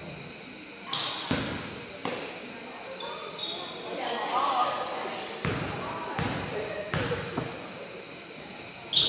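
A basketball bounces on a hard court in an echoing gym.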